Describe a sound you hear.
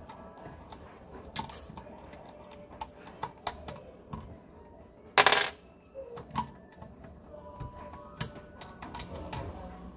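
A plastic pipe knocks and rubs against fittings.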